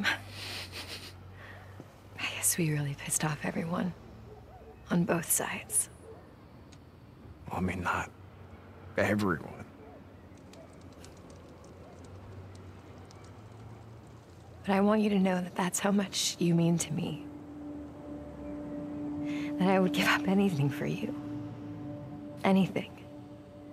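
A young woman speaks softly and warmly, close by.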